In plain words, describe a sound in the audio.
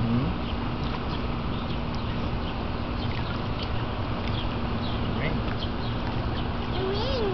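Water laps and splashes softly around a man wading in a pool.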